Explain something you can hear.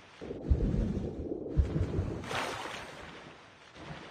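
Water splashes and sloshes as a swimmer moves through it.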